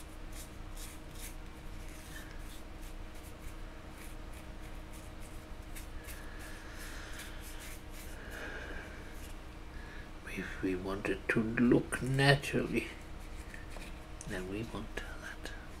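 A thin tool taps lightly on a hard model.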